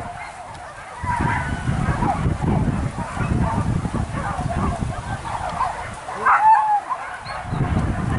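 Wind gusts and rumbles outdoors.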